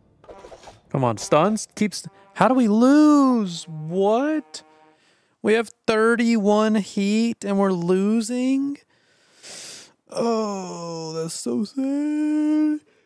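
A young man wails and groans loudly through a microphone, close by.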